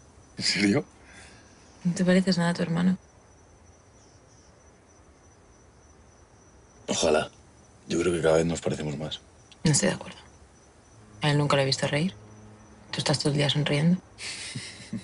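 A young woman speaks softly and playfully, close by.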